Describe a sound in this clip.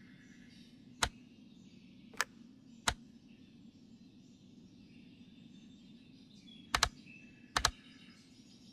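Tiles slide into place with short, sharp clicks.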